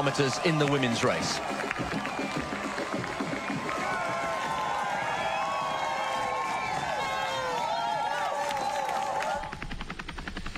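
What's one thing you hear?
A crowd cheers and claps loudly outdoors.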